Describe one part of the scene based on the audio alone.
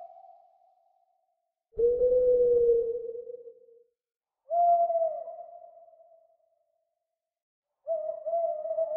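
An owl hoots in long, low calls with pauses between them.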